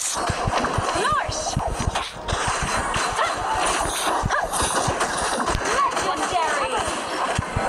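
Game spell sounds whoosh and chime.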